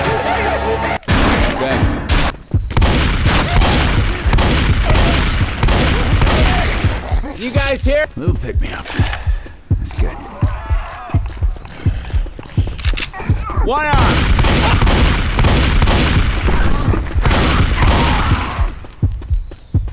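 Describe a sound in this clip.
A shotgun fires in rapid, repeated blasts.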